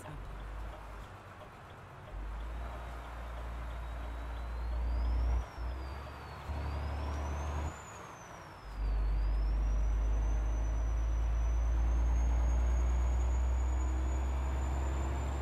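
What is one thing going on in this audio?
A truck engine rumbles low and changes pitch as it speeds up and slows down.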